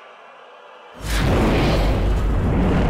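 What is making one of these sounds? A giant metal machine smashes forward with a loud, deep roaring crash.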